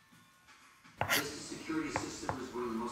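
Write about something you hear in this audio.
A knife chops on a cutting board.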